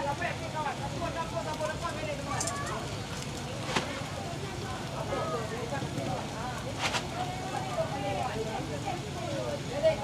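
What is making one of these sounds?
Wooden skewers tap and scrape against a metal griddle.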